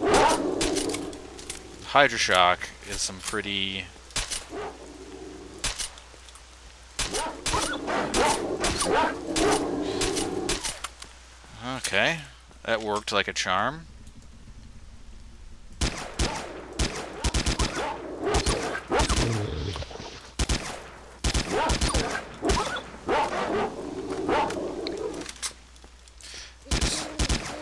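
A gun fires in rapid bursts of shots.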